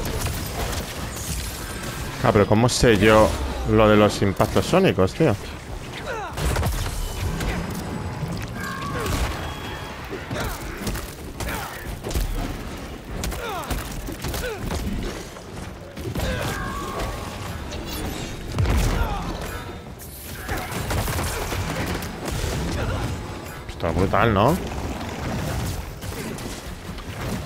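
Explosions and heavy impacts boom during a fight.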